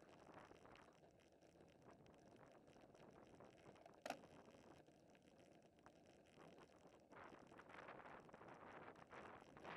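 Wind rushes past outdoors, rising and falling.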